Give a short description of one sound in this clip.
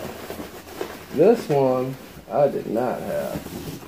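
Cardboard rustles and scrapes as a box is handled.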